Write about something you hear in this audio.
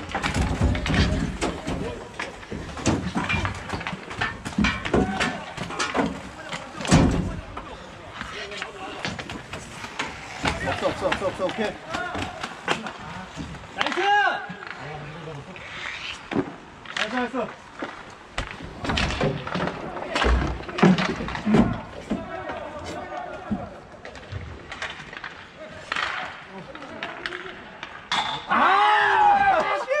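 Inline skates roll and scrape across a hard court.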